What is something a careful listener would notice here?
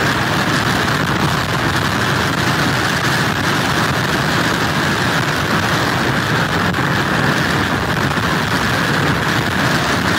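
Strong wind blows hard outdoors.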